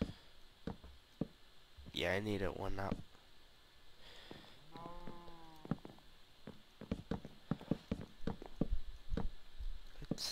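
Wooden blocks thud softly as they are placed, again and again.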